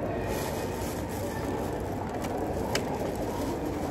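A plastic bottle cap clicks as it is twisted open.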